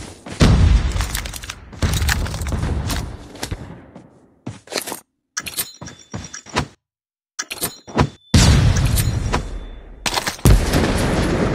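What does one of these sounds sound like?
A sniper rifle fires with a loud boom.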